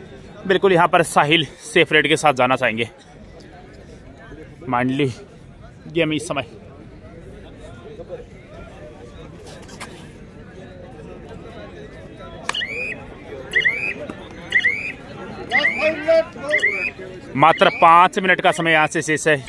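Young men shout loudly nearby.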